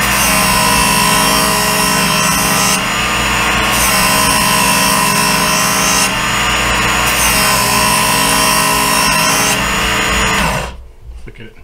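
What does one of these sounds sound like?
An electric knife sharpener whirs steadily.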